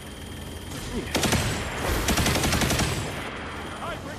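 Gunfire rattles in a rapid burst.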